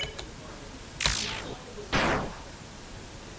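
Game sound effects slash twice, each sweeping down in pitch.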